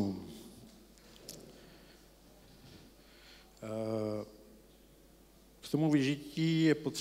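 A man speaks to an audience through a microphone in an echoing room.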